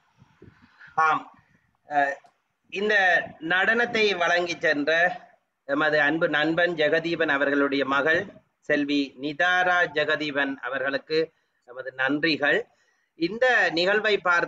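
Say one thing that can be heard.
A man speaks with animation close to a microphone, as if over an online call.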